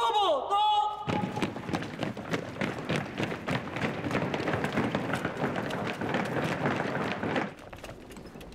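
Many boots march in step across hard ground.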